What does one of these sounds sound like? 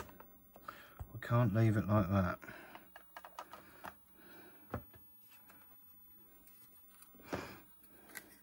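A plastic game cartridge clicks and taps as hands handle and open it.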